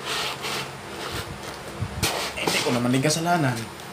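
Hands open the flaps of a cardboard box.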